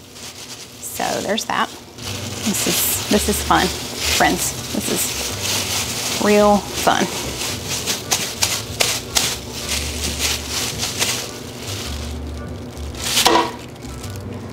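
A plastic glove crinkles and rustles as hands shape raw meat.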